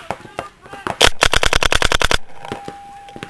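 A paintball marker fires a rapid burst of shots.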